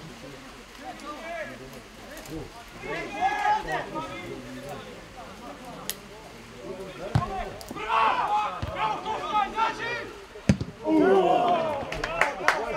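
Men shout and call out across an open field.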